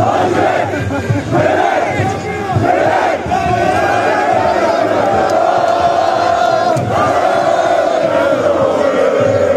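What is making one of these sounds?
A large crowd of young people chants and sings loudly together outdoors.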